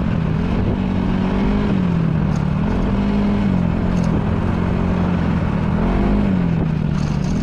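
A motorcycle engine hums steadily, rising and falling slightly in pitch.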